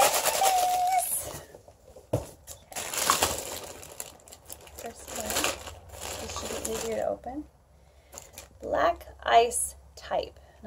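A woman speaks to a close microphone with animation.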